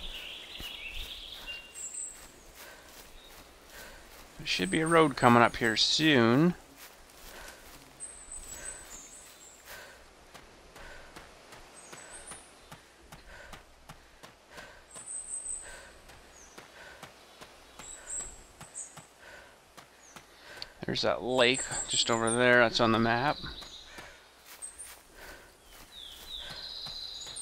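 Footsteps crunch steadily on leafy ground.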